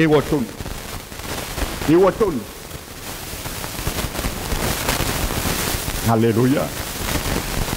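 A middle-aged man speaks calmly in short phrases through a headset microphone.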